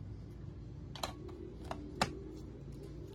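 Plastic parts click as a small printer is snapped shut.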